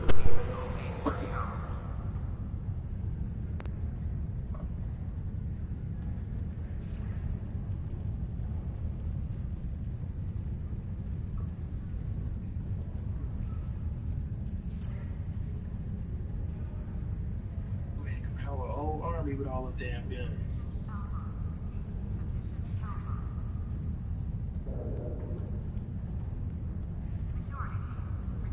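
Soft electronic menu blips sound now and then.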